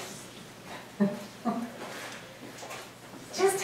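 A woman laughs into a microphone.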